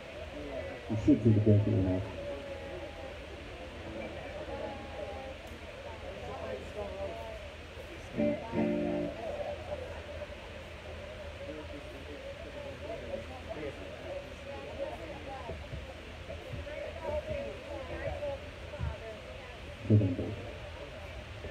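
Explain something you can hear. An electric guitar plays a few short notes through an amplifier.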